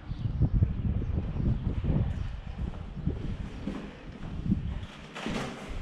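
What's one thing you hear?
Wind buffets outdoors.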